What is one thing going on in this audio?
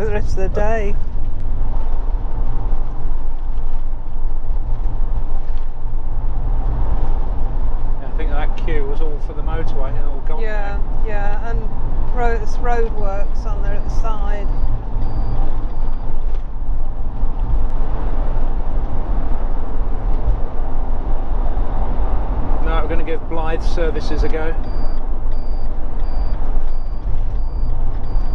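Tyres rumble steadily along a road.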